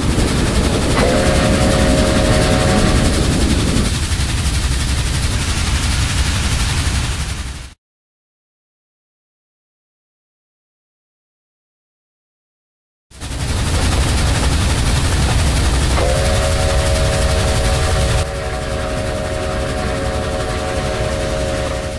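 A train horn blows a long, steady chord.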